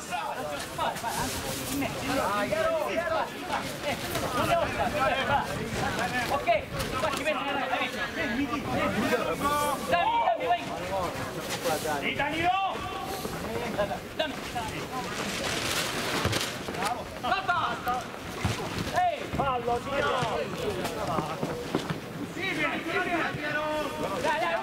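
Men shout and call out to each other across an open field outdoors.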